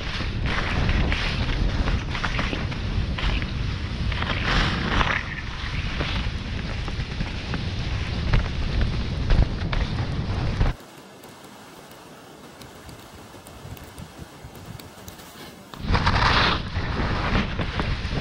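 Wind rumbles and buffets against the microphone.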